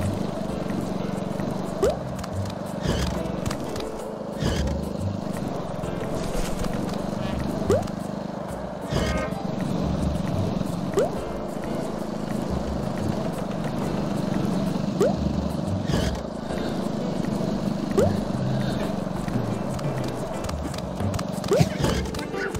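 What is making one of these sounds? Skateboard wheels roll steadily over pavement.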